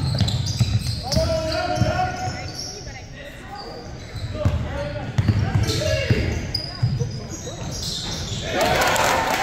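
Young men shout to each other in an echoing gym.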